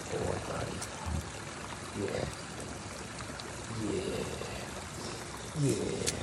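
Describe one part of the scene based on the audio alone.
A small stream trickles over rocks nearby.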